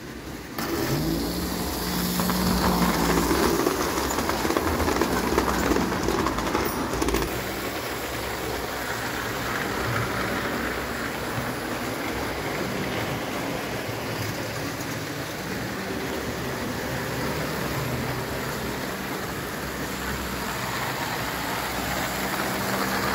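Toy trains rattle and whir along metal tracks.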